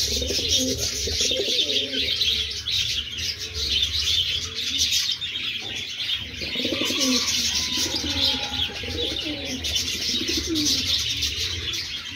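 Pigeons coo in low, rolling bursts close by.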